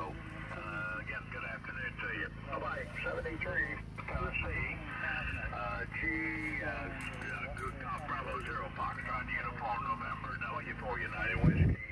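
An elderly man speaks calmly into a radio transceiver's hand microphone.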